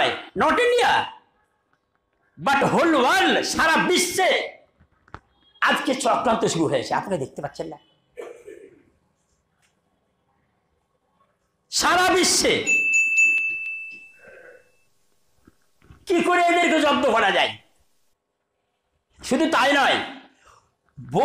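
An elderly man preaches forcefully into a headset microphone, in loud bursts with pauses between them.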